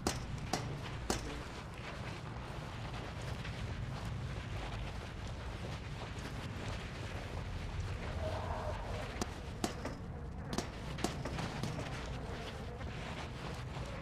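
Footsteps crunch on a gritty floor.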